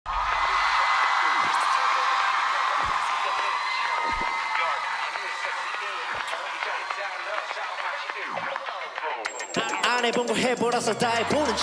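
Loud pop music with deep falling electronic swoops plays.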